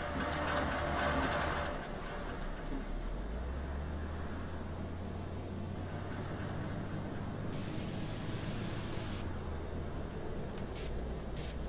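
A bus engine hums steadily and speeds up as the bus drives off.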